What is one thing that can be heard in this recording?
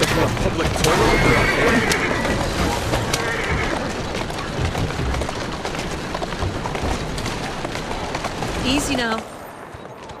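A horse-drawn carriage rattles over cobblestones.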